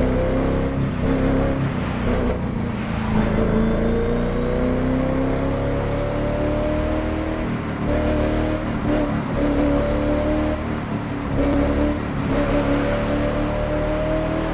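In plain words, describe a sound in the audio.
A sports car engine roars loudly, revving up and dropping between gear shifts.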